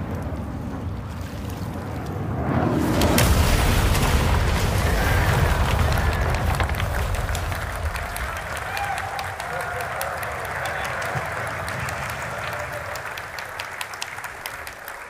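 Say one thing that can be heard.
Water laps and splashes steadily.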